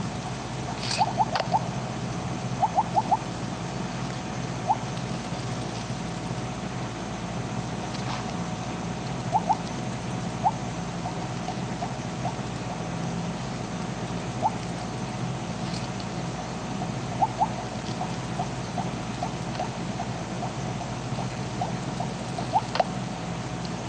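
Short electronic blips sound again and again as a game snake eats.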